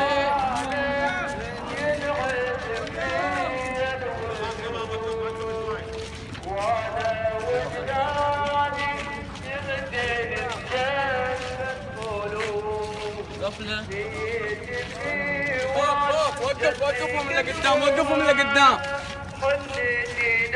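A crowd of men chant together loudly outdoors.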